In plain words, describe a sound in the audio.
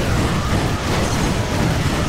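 Explosions boom as a machine is blown apart.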